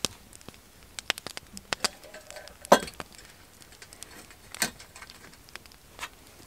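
Metal parts clink as a small stove is handled.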